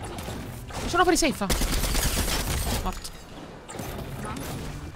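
Gunshots ring out in a game.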